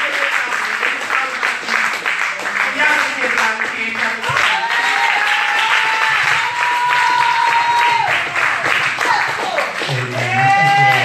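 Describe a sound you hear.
A woman sings loudly through a microphone in an echoing hall.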